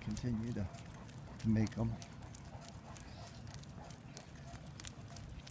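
A dog's paws patter lightly on the pavement.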